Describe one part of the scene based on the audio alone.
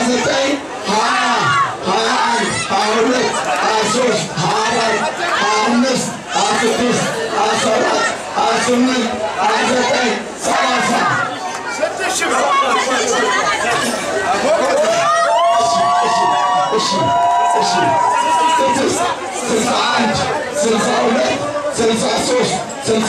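A middle-aged man speaks with animation through a microphone and loudspeakers.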